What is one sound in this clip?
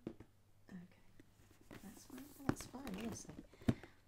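A book's pages rustle in a hand.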